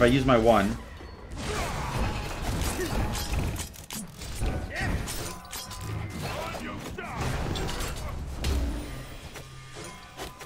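Magic blasts and clashing weapon sounds from a video game play in quick bursts.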